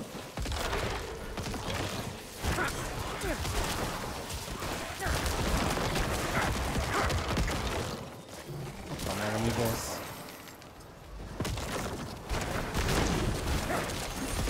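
Game spells crash and explode in bursts.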